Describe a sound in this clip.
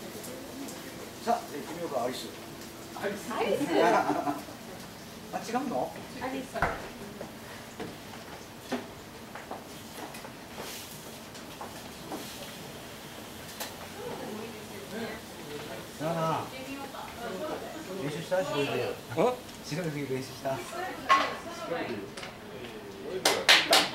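A middle-aged man talks casually.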